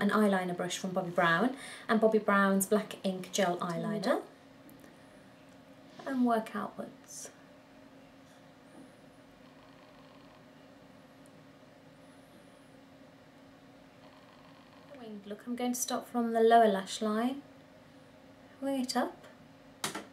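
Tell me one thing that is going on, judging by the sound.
A woman talks calmly and closely, as if into a microphone.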